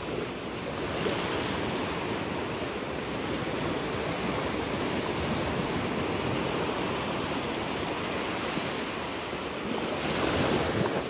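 Small waves lap and wash onto the shore nearby.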